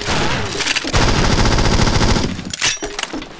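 A submachine gun fires a rapid burst.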